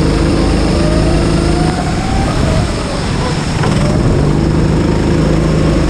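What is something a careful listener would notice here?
Another go-kart engine whines nearby.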